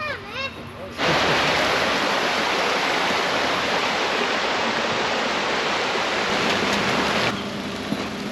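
A shallow stream rushes and splashes over rocks close by.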